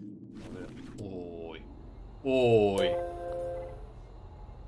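A man speaks briefly through a close microphone.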